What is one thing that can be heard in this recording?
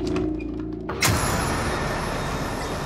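A door slides open with a sudden whoosh.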